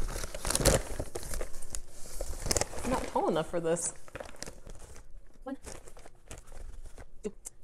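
A paper flour sack rustles and crinkles.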